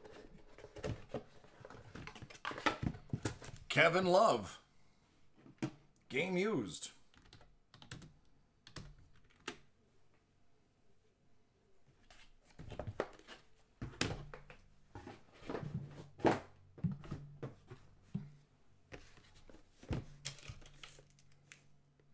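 Hard plastic cases knock and rattle as hands handle them.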